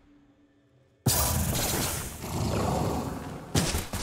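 A magic blast bursts with a loud whoosh and crackle.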